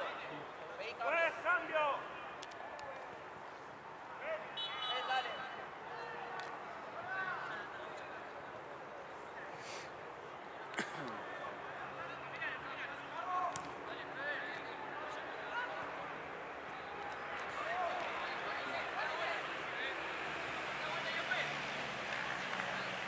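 Young men shout and call to each other across an open outdoor pitch.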